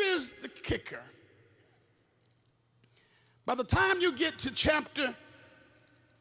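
A man preaches with animation into a microphone in a large echoing hall.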